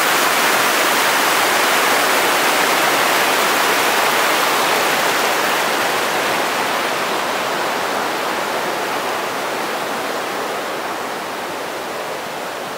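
A mountain stream rushes loudly over rocks, then slowly fades.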